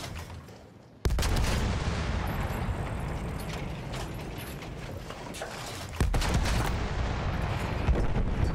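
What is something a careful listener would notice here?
A heavy anti-aircraft gun fires in deep booming bursts.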